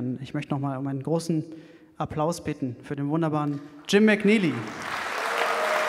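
A man speaks over a microphone in a large hall.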